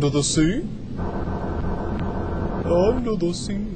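A small underwater craft's engine hums steadily.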